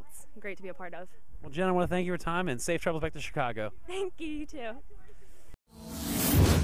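A young woman speaks into a microphone, sounding animated.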